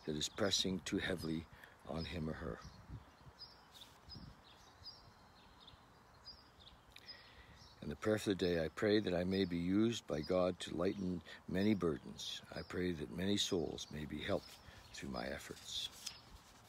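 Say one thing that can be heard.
An elderly man speaks calmly and close to the microphone.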